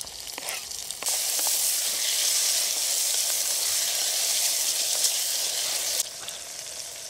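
Food sizzles loudly in a hot pot as it is stirred.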